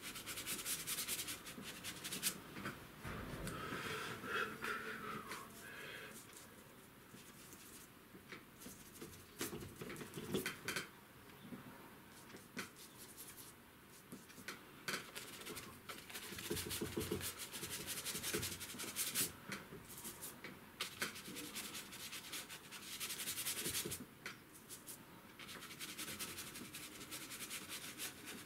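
A stiff brush scrubs and scratches across paper.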